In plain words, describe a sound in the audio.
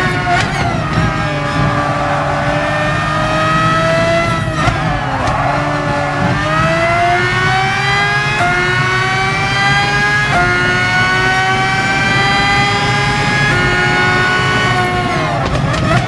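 A racing car engine whines loudly, rising in pitch through the gears and dropping as it slows for corners.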